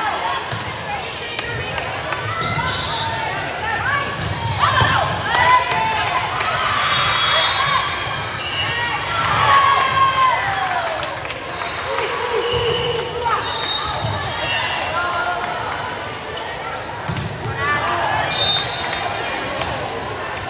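Young women shout and cheer in a large echoing gym.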